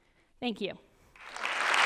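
A young woman speaks briefly into a microphone in a large hall.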